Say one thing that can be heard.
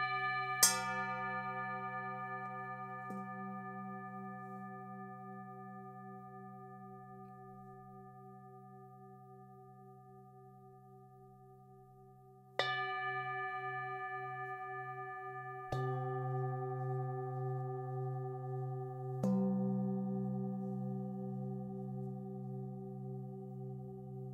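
Metal singing bowls are struck with a mallet, each strike ringing out in a long, slowly fading hum.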